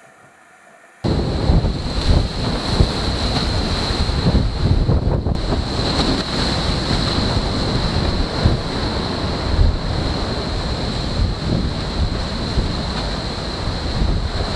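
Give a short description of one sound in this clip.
Strong wind roars and buffets loudly.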